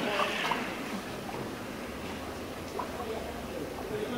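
Water sloshes as a tyre is dunked in a tank.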